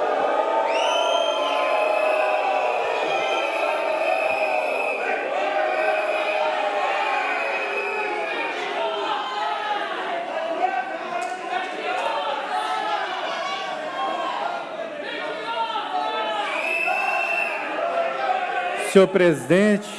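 Many people murmur and chatter in a large echoing hall.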